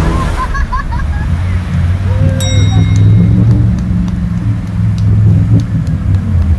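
Muddy water splashes and sprays around a driving vehicle.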